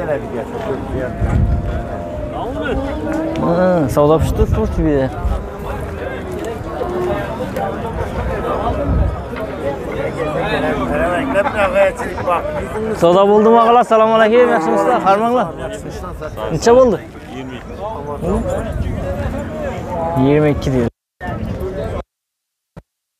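Several men talk loudly close by, outdoors.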